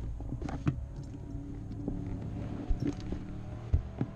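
Harness buckles click and clatter.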